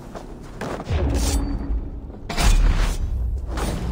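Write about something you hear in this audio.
An arrow whooshes off a bowstring.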